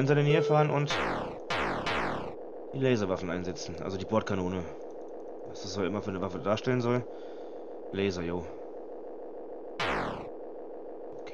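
Electronic game tones sweep quickly downward.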